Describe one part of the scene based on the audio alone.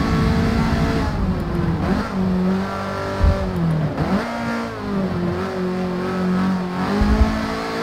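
An engine's revs drop sharply as the car brakes hard.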